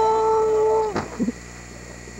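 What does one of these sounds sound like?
A snowboarder crash-lands with a thud in deep powder snow.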